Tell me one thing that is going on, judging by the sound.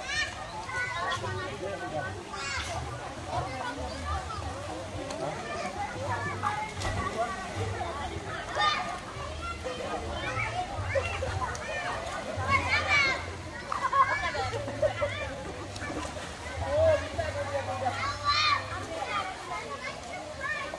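Water splashes as swimmers play in a pool.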